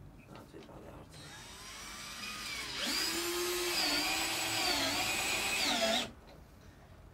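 A cordless drill whirs, rising and falling in pitch.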